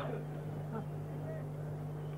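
An elderly man speaks through a microphone and loudspeakers, outdoors.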